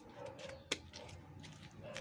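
A knife slices through raw meat.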